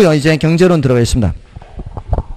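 A man speaks loudly into a microphone, close by.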